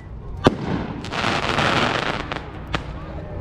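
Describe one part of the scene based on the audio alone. Fireworks crackle and fizzle overhead.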